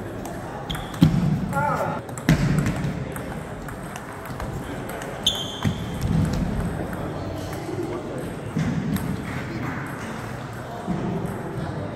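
A table tennis ball clicks off bats and the table in a large echoing hall.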